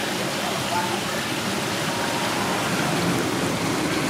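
Water splashes briefly.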